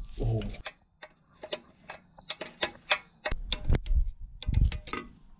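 A metal wrench clicks and taps against a bolt.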